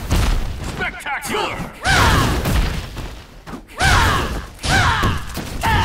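Heavy blows and magic blasts crash and boom in quick bursts.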